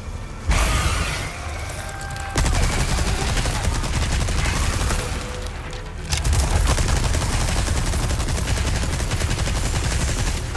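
A gun fires in rapid bursts, booming loudly.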